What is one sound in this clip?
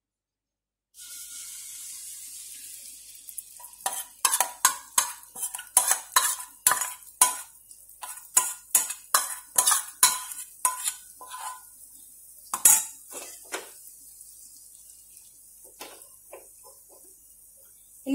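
Batter sizzles and crackles in a hot pan.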